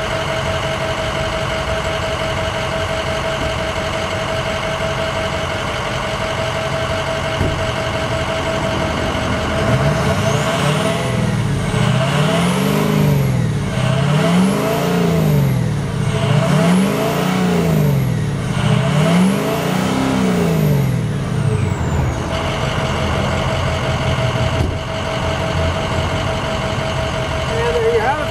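A truck engine idles with a steady rumble close by.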